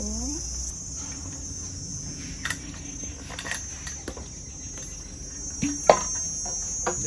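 A metal bowl clinks against a hard surface.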